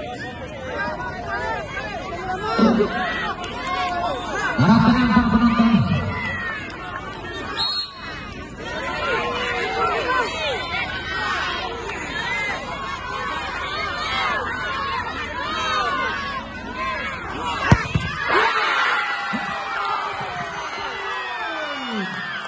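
A large crowd shouts and cheers outdoors.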